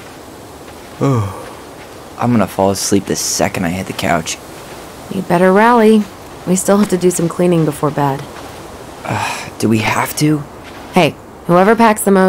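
A young woman talks calmly.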